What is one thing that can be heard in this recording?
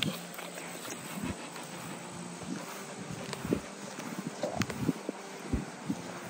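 A dog pants softly close by.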